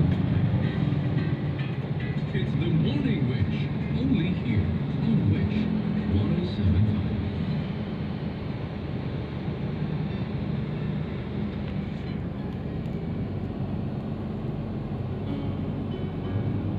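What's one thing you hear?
A car engine hums steadily with road rumble, heard from inside the car.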